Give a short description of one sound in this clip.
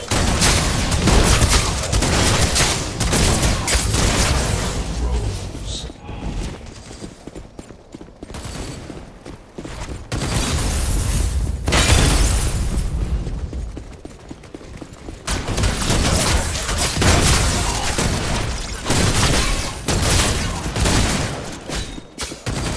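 Guns fire in rapid bursts, with crackling energy blasts.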